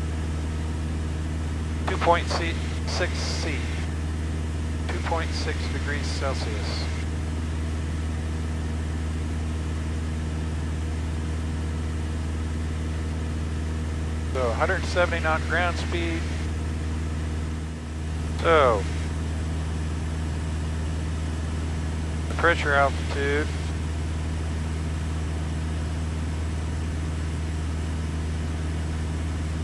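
An aircraft engine drones steadily in a small cockpit.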